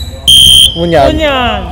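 A referee blows a sharp whistle blast.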